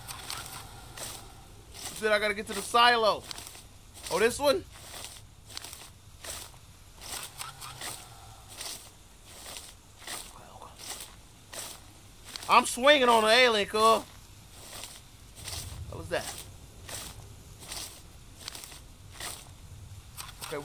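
Footsteps crunch steadily on a dirt path.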